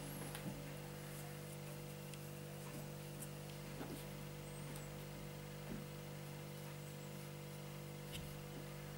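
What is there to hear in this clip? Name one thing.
A small electric fan hums steadily.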